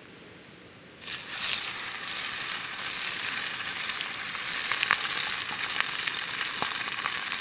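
A small fire crackles and hisses.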